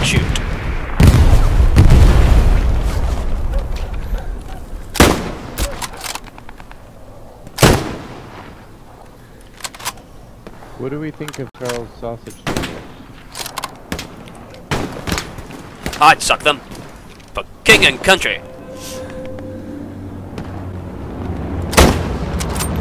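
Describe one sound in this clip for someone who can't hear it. A bolt-action rifle fires sharp single shots.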